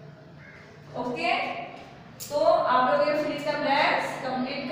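A young woman speaks loudly and clearly, close by.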